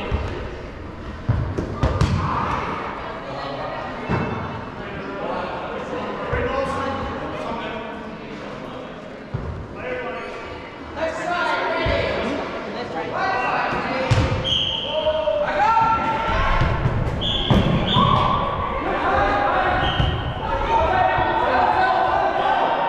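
Balls thud against a hard floor and bodies in a large echoing hall.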